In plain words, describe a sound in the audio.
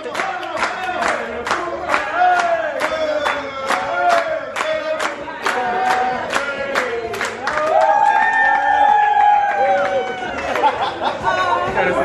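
A young man sings loudly and with feeling.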